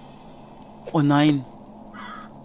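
A crow caws sharply.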